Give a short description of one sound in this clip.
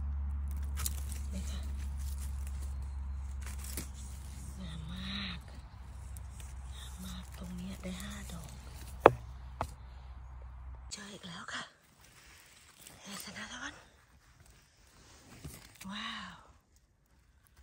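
A knife cuts through a mushroom stem.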